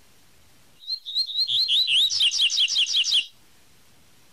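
A small bird sings a quick series of bright, rising chirps that speed up and then stop.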